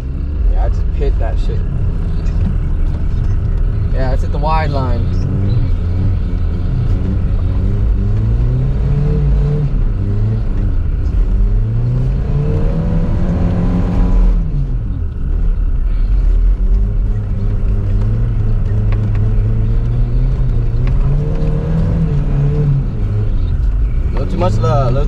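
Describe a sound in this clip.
Tyres spin and crunch over packed snow.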